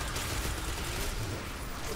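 Rapid gunfire blasts in a video game.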